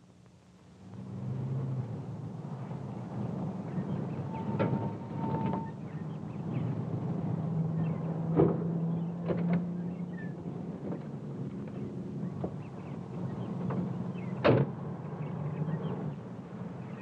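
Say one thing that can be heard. A car engine hums steadily.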